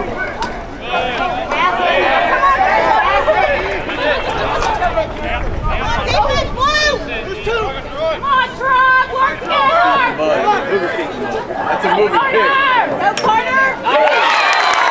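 Young men shout to each other across an open field.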